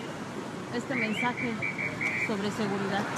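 A car horn honks.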